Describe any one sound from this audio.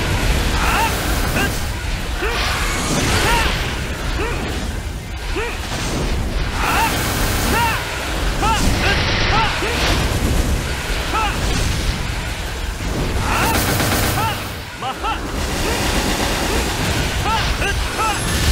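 Game attack effects burst and crash rapidly.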